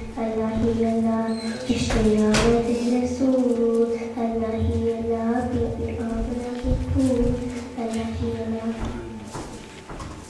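A young girl recites in a melodic chant through a microphone, in an echoing hall.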